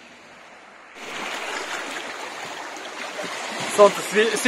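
Water laps against rocks.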